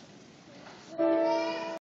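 A children's choir starts to sing.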